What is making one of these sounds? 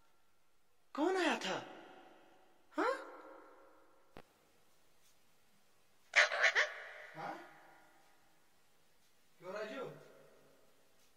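A parrot squawks loudly in short, sharp calls.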